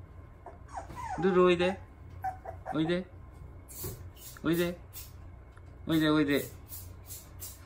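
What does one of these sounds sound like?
A puppy whines softly.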